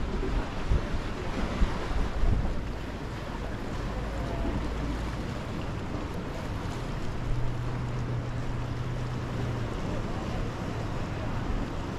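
Wind blows outdoors, rumbling across the microphone.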